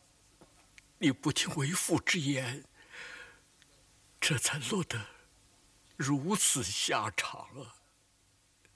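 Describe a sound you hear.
An elderly man speaks hoarsely and with feeling, close by.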